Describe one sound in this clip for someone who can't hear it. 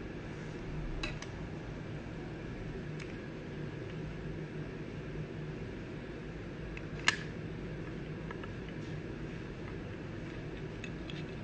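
A hard plastic case clicks and taps as it is handled.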